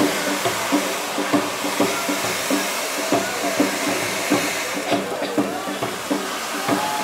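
Fireworks pop and bang sharply, again and again.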